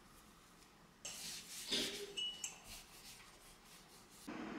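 A cloth rustles as it wipes a cup.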